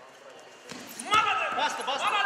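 Two wrestlers' bodies thud onto a mat.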